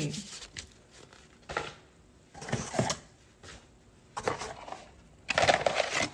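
Paper rustles as a box is unwrapped.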